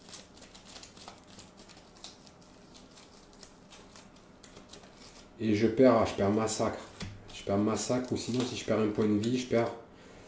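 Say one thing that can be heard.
Playing cards rustle and click softly as they are handled.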